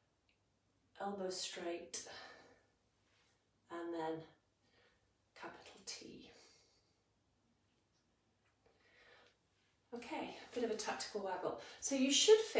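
A woman speaks calmly close by, giving instructions in short phrases.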